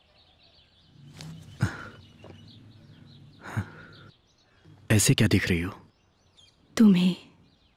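A man speaks in a low, calm voice nearby.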